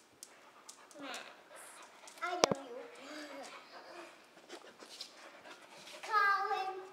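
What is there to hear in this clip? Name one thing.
A young girl speaks and squeals excitedly close by.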